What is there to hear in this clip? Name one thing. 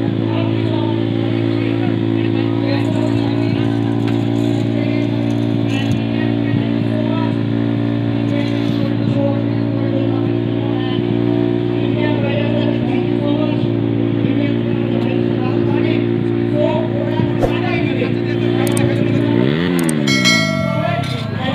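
A motorcycle engine idles with a steady low hum, then winds down.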